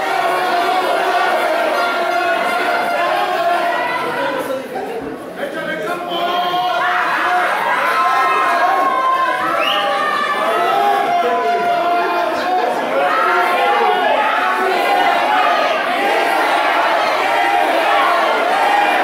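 A large crowd of men and women shouts and cheers in an echoing hall.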